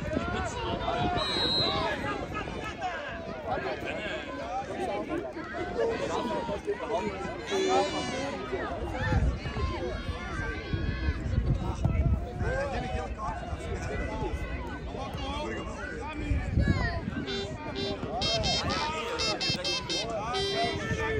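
A crowd of spectators chatters in the distance.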